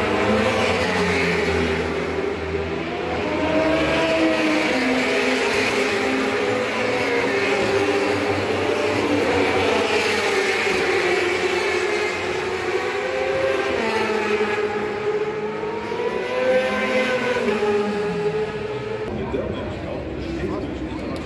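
Motorcycle engines roar past at high revs, rising and falling in pitch.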